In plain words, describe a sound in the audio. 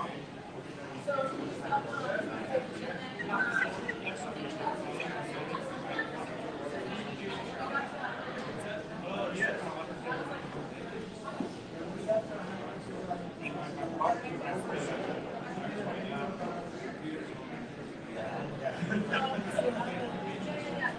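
Several men talk with animation around a table, heard from across a room.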